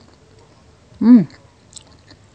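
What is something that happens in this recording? A young woman hums a short, pleased sound with her mouth closed.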